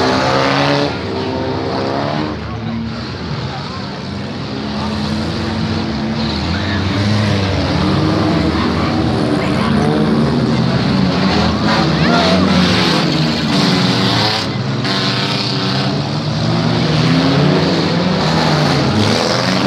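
Car engines roar and rev as cars race around.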